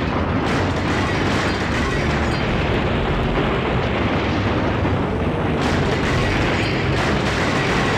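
Cars crash and scrape against each other with loud bangs.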